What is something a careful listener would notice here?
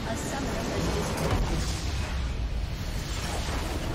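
A base structure explodes with a loud rumbling blast.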